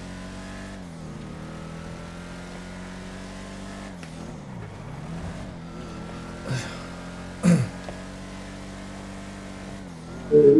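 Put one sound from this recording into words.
A car engine hums steadily and shifts in pitch as the car drives.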